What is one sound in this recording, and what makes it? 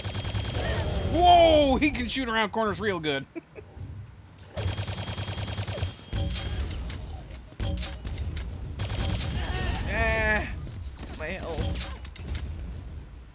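Men speak with animation through headset microphones.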